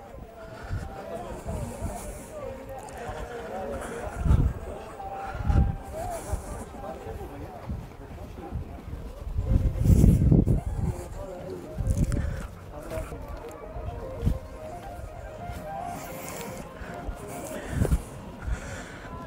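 Footsteps crunch and thud on grass and rocky ground.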